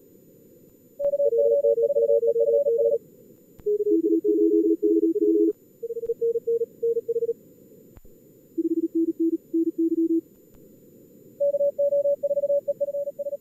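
Two-tone radio teletype signals warble in quick bursts.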